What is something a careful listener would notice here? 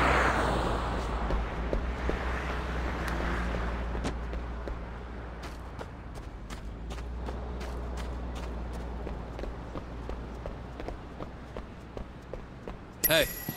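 Footsteps run on hard ground.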